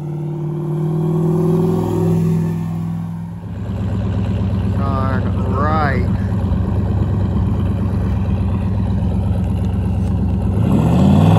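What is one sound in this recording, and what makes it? A powerful car engine rumbles and roars.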